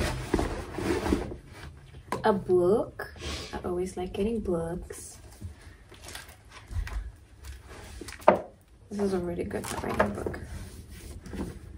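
Paper and plastic packaging rustle.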